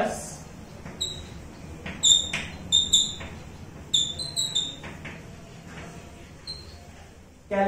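Chalk taps and squeaks on a blackboard.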